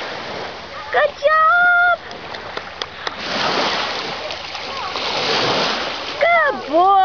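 A dog splashes through shallow water.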